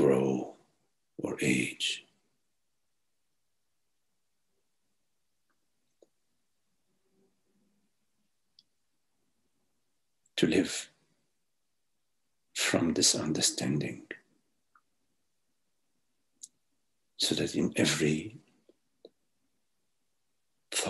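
A middle-aged man speaks calmly over an online call, with long pauses.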